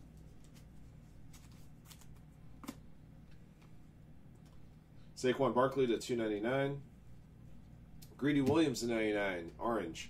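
Trading cards rustle and flick as they are shuffled by hand, close by.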